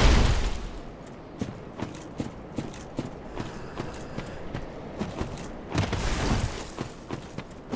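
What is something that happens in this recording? Armoured footsteps crunch on gravel and rock.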